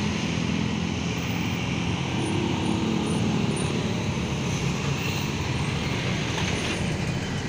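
A truck engine drones as the truck passes close by.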